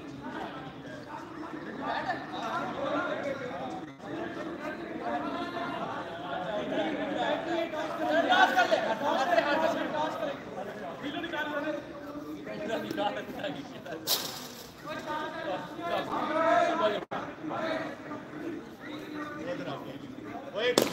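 A group of young men talk and call out to each other at a distance, outdoors.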